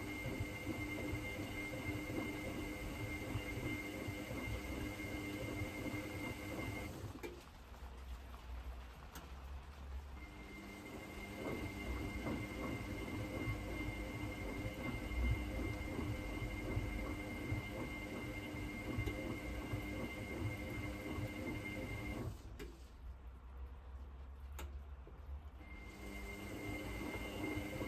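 A washing machine motor hums steadily, pausing twice for a few seconds.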